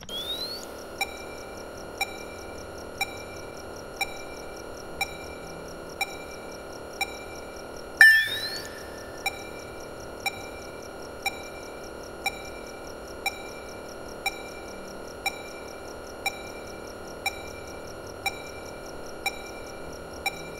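A computer beeps softly once every second.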